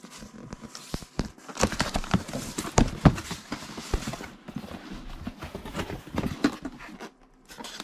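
Cardboard flaps scrape and rustle as a box is opened.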